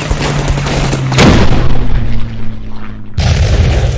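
A deep rumbling crash sounds as a game card attacks.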